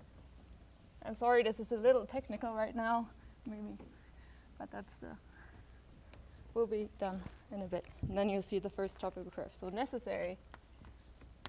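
A young woman speaks calmly to an audience.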